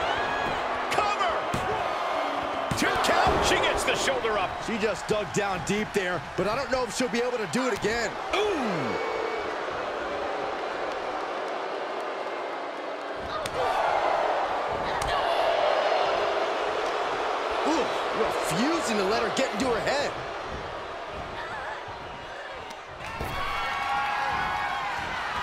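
Blows land with sharp thuds.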